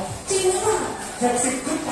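A woman speaks through a microphone over a loudspeaker.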